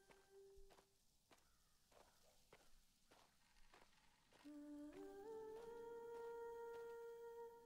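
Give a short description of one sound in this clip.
Footsteps crunch steadily over dry leaves and gravel.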